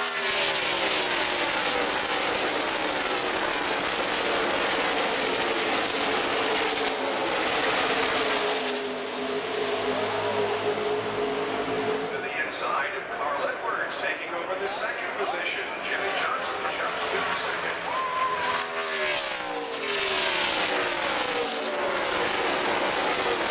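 Race car engines roar loudly as cars speed past.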